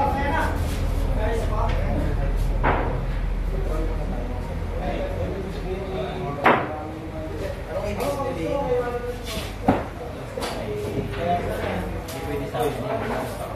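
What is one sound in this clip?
Young men and boys chat casually nearby.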